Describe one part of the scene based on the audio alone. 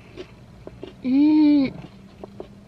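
A young woman hums a long, pleased note.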